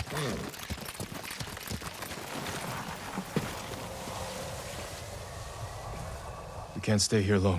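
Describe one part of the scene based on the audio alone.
Horse hooves clop on snowy ground.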